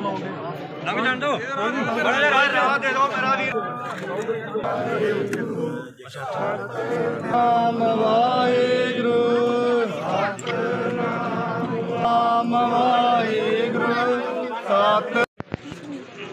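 Women wail and lament loudly nearby.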